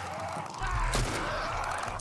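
A gunshot cracks.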